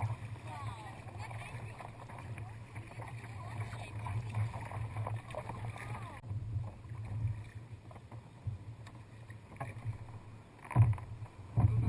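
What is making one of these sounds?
A kayak paddle dips and splashes in the water.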